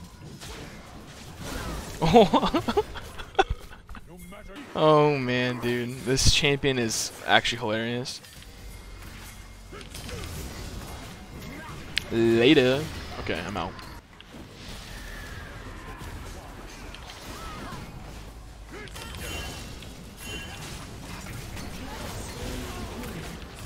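Magical spell effects whoosh and clash in a video game battle.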